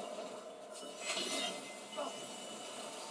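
A blade stabs into a body with a sharp thud.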